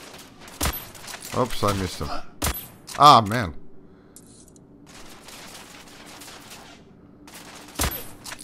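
Rifle shots crack sharply, one at a time, indoors.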